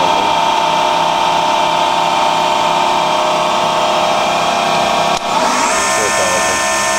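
A milling machine's spindle whines loudly and steadily, with the pitch shifting briefly near the end.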